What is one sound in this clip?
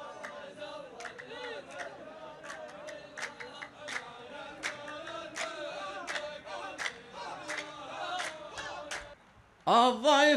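A group of men chants together.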